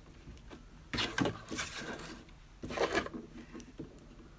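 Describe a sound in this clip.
A wooden board knocks and slides on a table.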